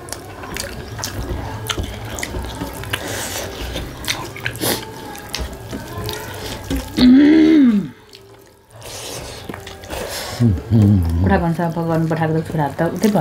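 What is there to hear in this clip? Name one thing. A woman chews and smacks her lips close by.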